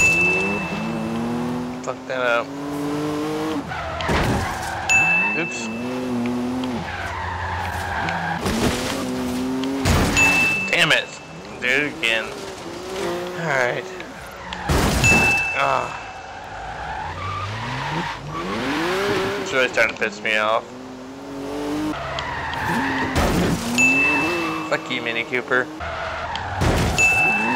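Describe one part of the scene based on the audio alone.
A sports car engine roars and revs up and down through the gears.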